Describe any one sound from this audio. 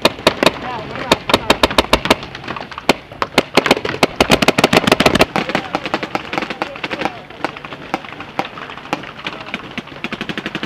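Paintball markers fire in rapid bursts of sharp pops nearby and all around.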